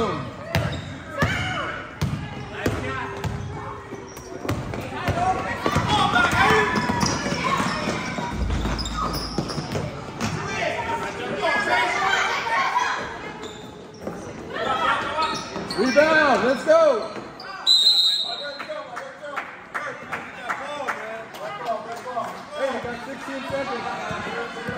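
Spectators talk and cheer in the stands.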